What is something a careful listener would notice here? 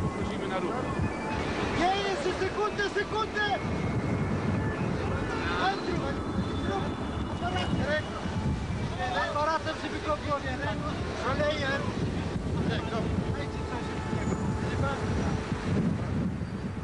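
A crowd of men talk and shout excitedly outdoors.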